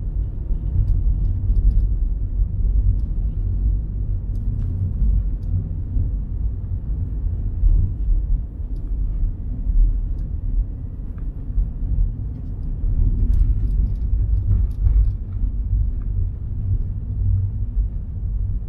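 A car engine rumbles low and steady from inside the car.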